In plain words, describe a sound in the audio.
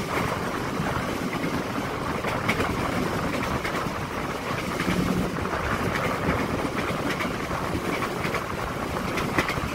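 Train wheels clatter and rattle over the rails.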